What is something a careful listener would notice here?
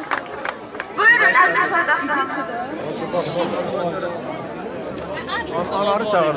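A crowd of men and women shouts and cheers loudly.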